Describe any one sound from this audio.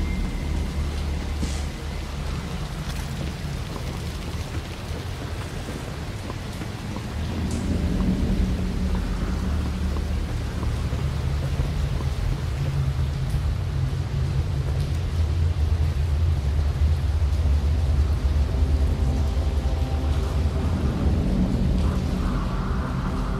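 Footsteps clatter on a hard floor.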